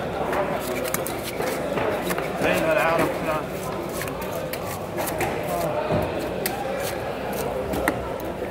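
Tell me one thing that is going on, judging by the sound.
A knife scrapes scales off a large fish with quick, rasping strokes.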